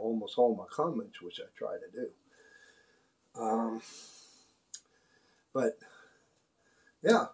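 An older man speaks calmly and close by, in short bursts.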